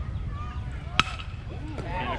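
A metal bat cracks against a ball.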